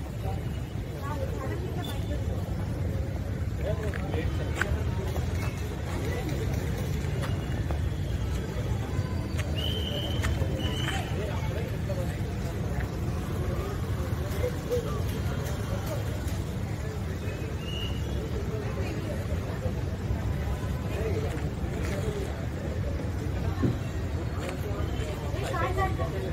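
A crowd of men and women murmurs in the distance.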